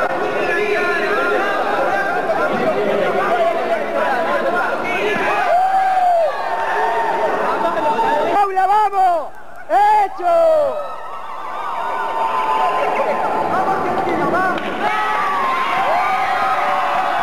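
A large crowd chatters and calls out in a big echoing hall.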